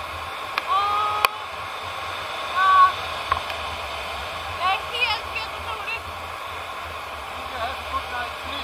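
Wind rushes past the microphone during a paraglider flight.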